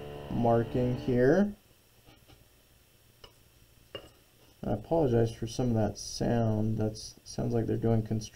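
A plastic set square slides and taps on paper.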